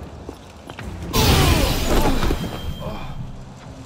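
A loud blast bursts and hisses out.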